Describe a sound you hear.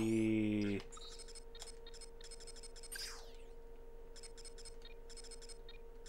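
Video game menu blips beep quickly in a row.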